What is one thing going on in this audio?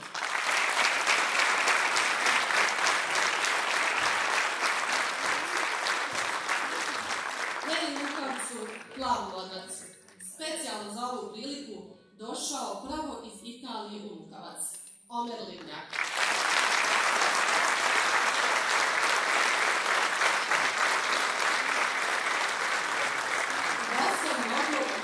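A large audience claps and cheers.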